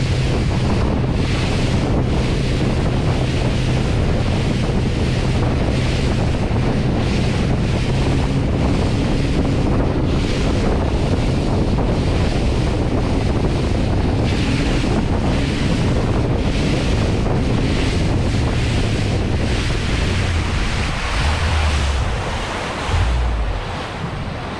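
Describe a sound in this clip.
Outboard motors roar steadily as a boat speeds across the water.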